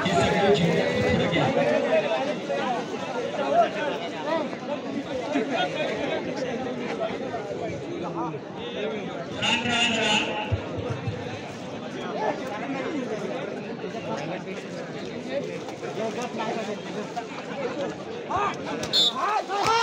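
Men close by call out loudly to one another.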